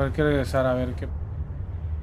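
A man talks casually into a microphone.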